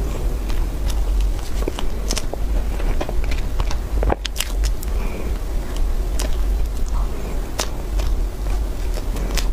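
A young woman chews soft food noisily close to a microphone.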